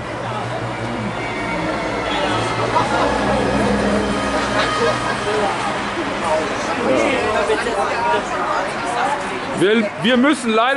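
A group of adults chat outdoors.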